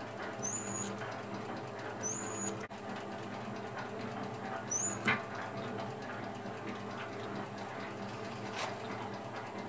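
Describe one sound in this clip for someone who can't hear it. Metal chips rattle and tick as a cutting tool scrapes the spinning metal.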